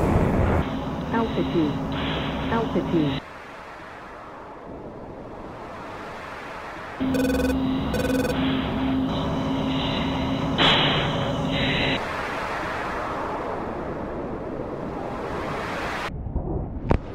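A jet engine rumbles steadily from inside the cockpit.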